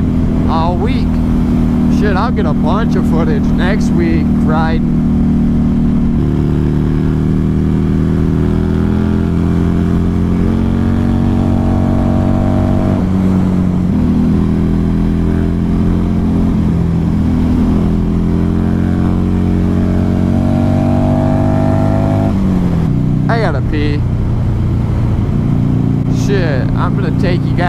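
A motorcycle engine hums steadily and rises and falls in pitch as it shifts gears.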